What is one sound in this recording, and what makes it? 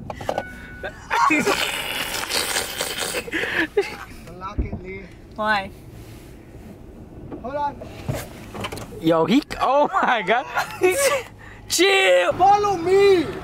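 A young woman talks and laughs close by inside a car.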